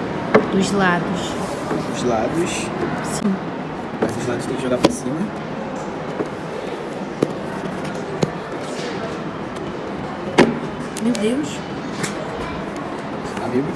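Fingers scratch and pick at a cardboard box.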